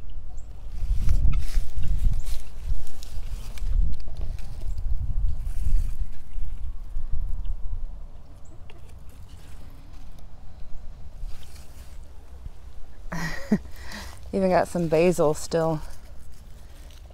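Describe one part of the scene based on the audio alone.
Plant leaves rustle as a hand brushes through them.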